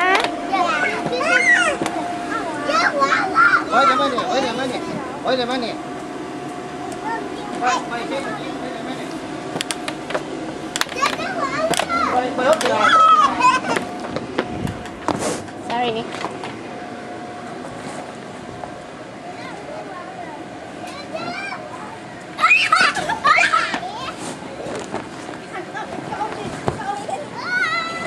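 Young children chatter and shout excitedly nearby.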